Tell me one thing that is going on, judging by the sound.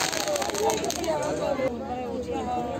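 A firework fizzes and crackles loudly outdoors.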